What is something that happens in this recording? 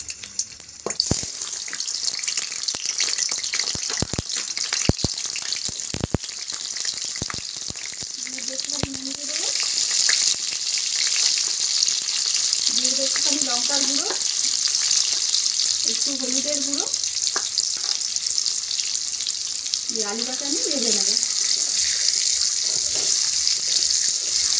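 Hot oil sizzles steadily in a pan.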